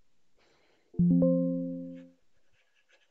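A computer alert chime sounds once, short and bright.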